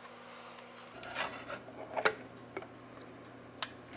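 Liquid creamer pours into a mug of coffee.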